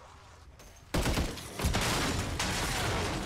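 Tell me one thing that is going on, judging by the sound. An explosion bursts loudly nearby.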